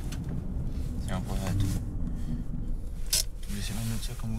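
A young man talks inside a car.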